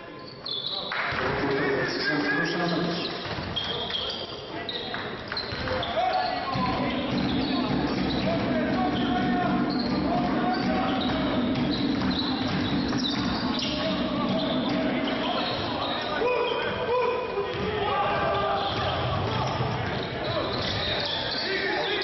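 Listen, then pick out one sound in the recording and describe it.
Sneakers squeak sharply on a hard court.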